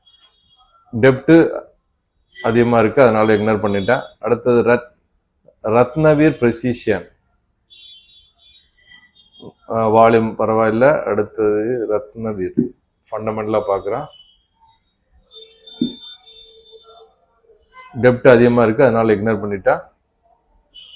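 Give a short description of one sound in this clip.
A man talks calmly and steadily, close to a microphone.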